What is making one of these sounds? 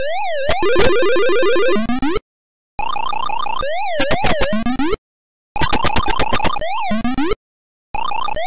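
Quick electronic blips chirp as a game character eats dots.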